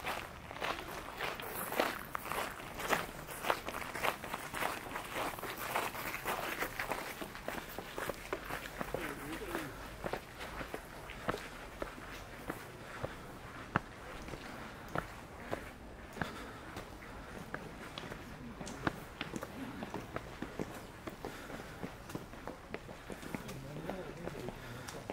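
Footsteps scuff on stone steps outdoors.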